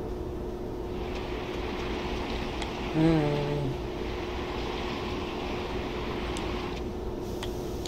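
A heavy box scrapes as it is pushed along a floor.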